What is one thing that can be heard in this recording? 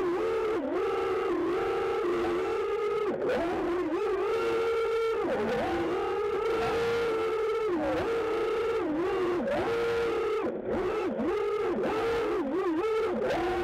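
A small racing drone's motors whine loudly, rising and dipping in pitch as it swoops about.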